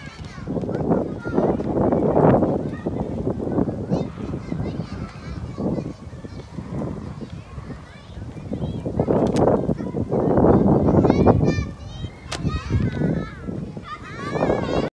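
Wind gusts loudly outdoors, rushing through bare trees.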